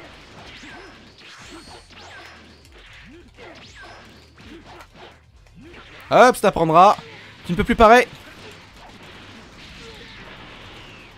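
Energy blasts whoosh and crackle in quick bursts.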